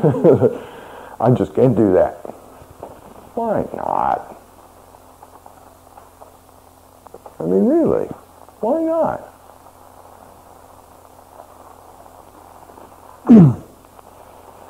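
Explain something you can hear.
A man speaks in short, expressive phrases close to a microphone, with long pauses between them.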